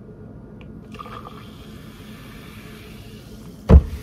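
Water pours from a plastic bottle into a cup.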